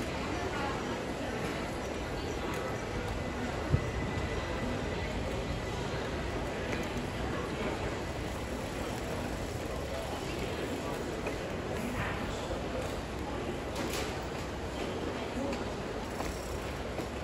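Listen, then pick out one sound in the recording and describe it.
A crowd murmurs indistinctly in a large echoing hall.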